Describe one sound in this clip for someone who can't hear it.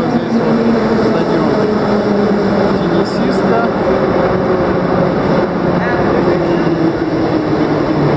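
Young men and women talk quietly in a large echoing hall.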